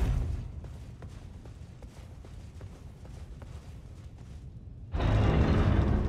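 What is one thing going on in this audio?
Footsteps tap on a stone floor.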